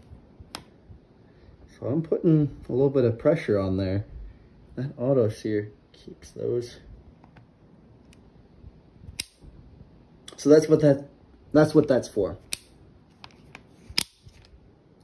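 A rifle's selector switch clicks into place.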